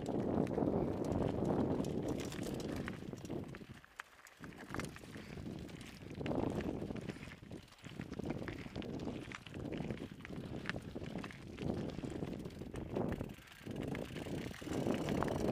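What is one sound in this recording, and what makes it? Footsteps crunch on loose rock and gravel.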